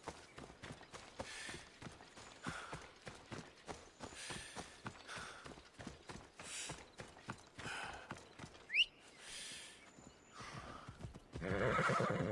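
Footsteps swish through tall grass at a quick pace.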